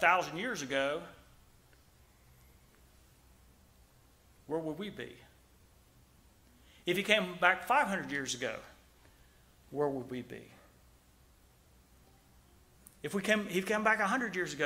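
A middle-aged man preaches with emphasis into a microphone, in bursts with long pauses.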